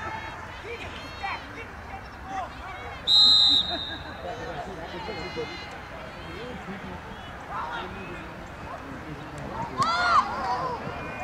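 Young women shout and call out across an open field in the distance.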